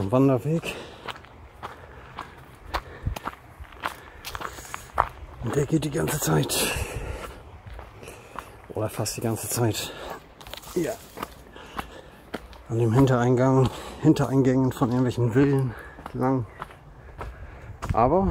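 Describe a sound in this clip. Footsteps crunch on a dirt and gravel path.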